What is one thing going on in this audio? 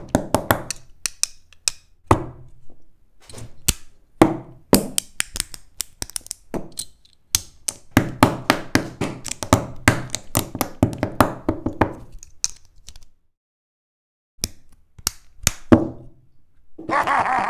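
Plastic toy bricks click and snap together.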